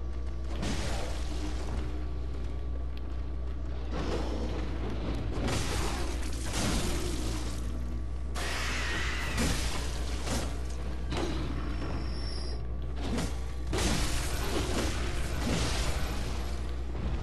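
Blades swing and strike with heavy, crunching hits.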